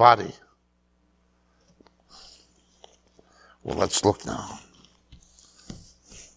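Pages of a book rustle as a man leafs through it.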